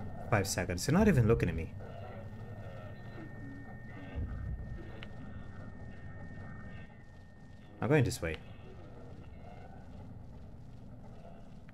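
Footsteps tread slowly on a wooden floor.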